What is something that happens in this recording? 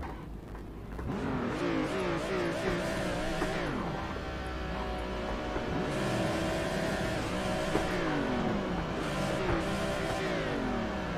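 Other racing cars' engines roar close by.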